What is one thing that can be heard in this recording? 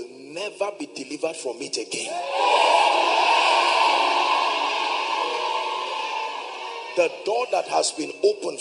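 A man preaches forcefully through a microphone.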